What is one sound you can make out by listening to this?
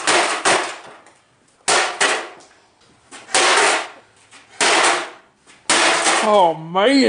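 A man smashes an object with heavy, crashing blows.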